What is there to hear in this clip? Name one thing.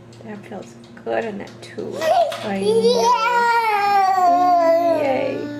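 A baby babbles and squeals loudly close by.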